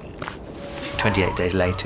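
A man groans in pain close by.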